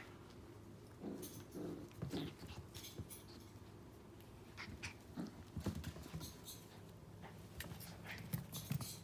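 Puppies growl playfully.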